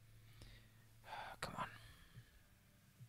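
A man murmurs briefly and quietly close to a microphone.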